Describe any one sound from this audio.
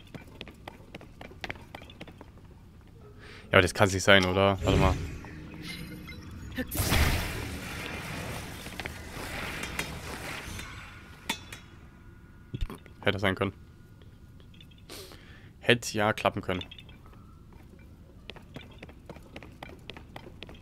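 Light footsteps patter on a stone floor.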